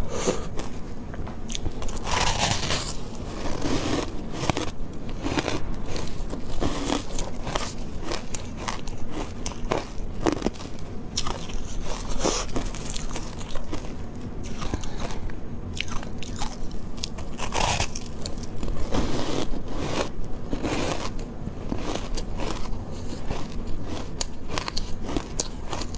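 A young woman crunches and chews icy food close to a microphone.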